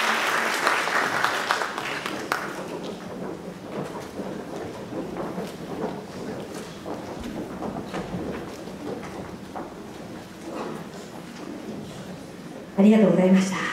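An audience applauds in a large hall and the clapping fades.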